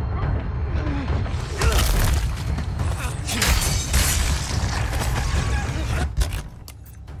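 Heavy blows land in a close scuffle.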